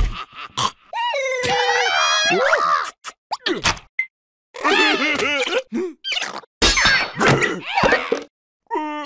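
A cartoon pirate shouts in a gruff, wailing voice.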